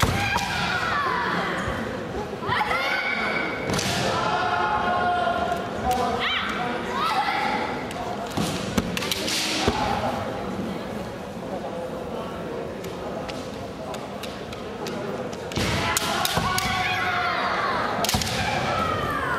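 Men shout fierce, drawn-out battle cries in a large echoing hall.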